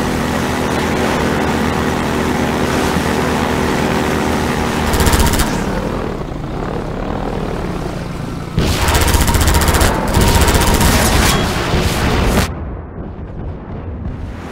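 A boat engine drones loudly and steadily.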